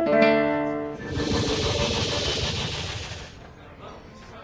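A shimmering magical sound effect swells and fades.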